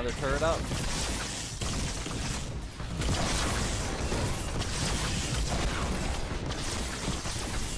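Game weapons strike and crash in quick bursts.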